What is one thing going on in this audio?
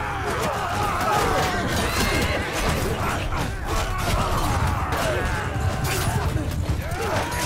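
Metal weapons clash and thud against wooden shields.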